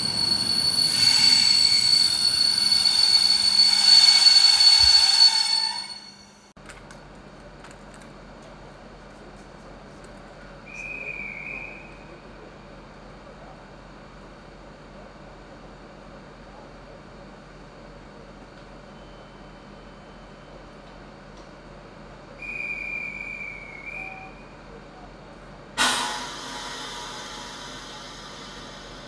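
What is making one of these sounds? A train idles with a low steady hum at a platform.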